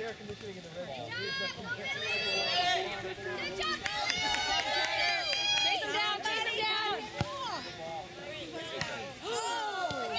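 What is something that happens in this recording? Spectators cheer and yell excitedly.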